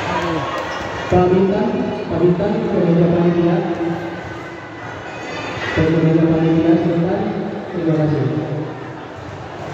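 A crowd cheers and chants loudly.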